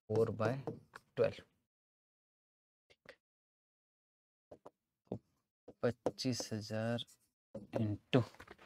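A man explains in a calm lecturing voice, close to a microphone, with pauses.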